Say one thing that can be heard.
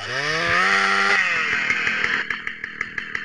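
A chainsaw engine revs up loudly and winds down.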